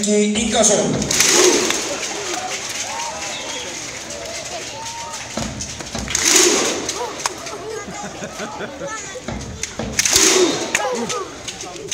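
A crowd of fans shouts and cheers in loud bursts.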